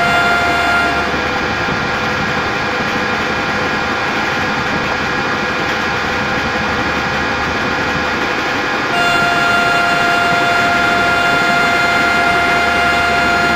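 An electric train rumbles steadily along the rails.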